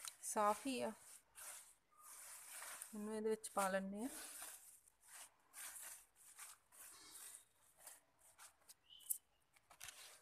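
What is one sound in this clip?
Leafy greens rustle in a plastic basket.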